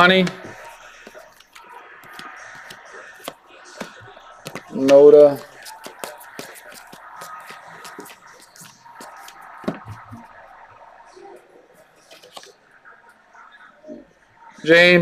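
Trading cards flick and rustle as they are shuffled by hand.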